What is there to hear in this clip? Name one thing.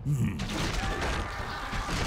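Weapons clash and strike in a fight.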